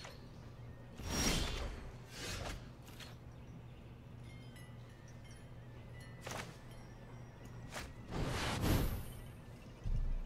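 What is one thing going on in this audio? Magical whooshing and chiming effects sound as cards are played.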